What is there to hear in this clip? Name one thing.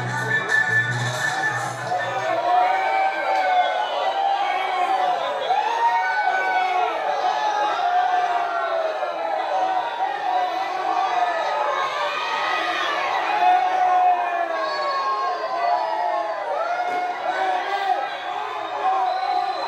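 A large crowd sings and chants loudly outdoors.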